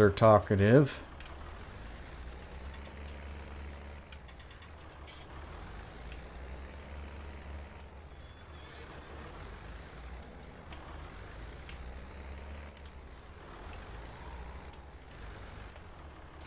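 A tractor engine drones as the tractor drives slowly.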